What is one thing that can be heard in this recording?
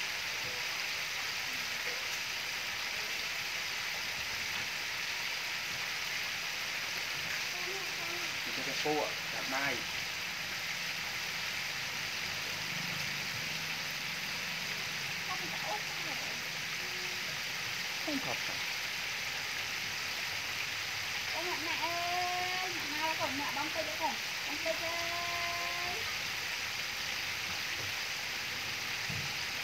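Chicken pieces sizzle and bubble in hot oil in an electric deep fryer.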